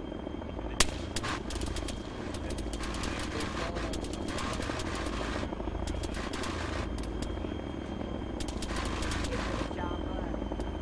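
Footsteps crunch on loose ground.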